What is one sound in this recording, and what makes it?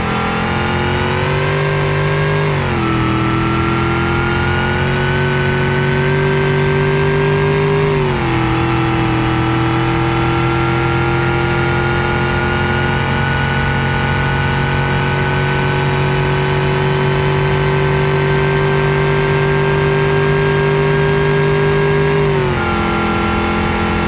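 A car engine roars loudly as it accelerates hard, its pitch climbing and dropping at each gear change.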